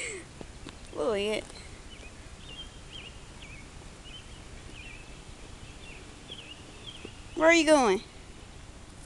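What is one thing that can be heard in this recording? A toddler babbles and calls out nearby.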